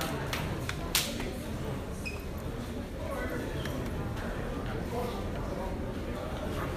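Footsteps shuffle across a hard floor.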